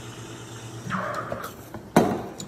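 A steam wand hisses into a milk jug.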